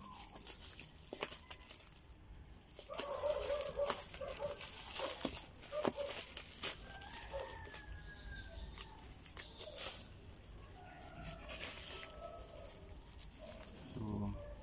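Scissors snip.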